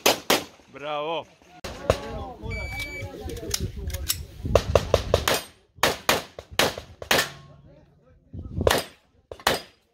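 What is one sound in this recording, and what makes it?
Pistol shots ring out sharply outdoors, one after another.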